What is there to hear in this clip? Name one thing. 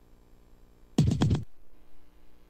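A short burst of electronic game sound effects plays loudly.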